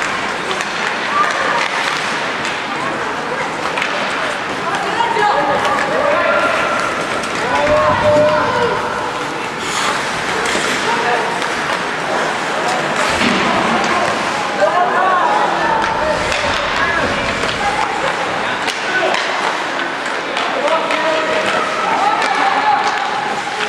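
Young players shout across an echoing rink.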